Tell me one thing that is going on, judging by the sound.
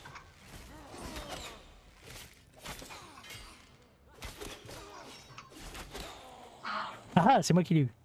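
Magic bolts burst with sharp crackling blasts.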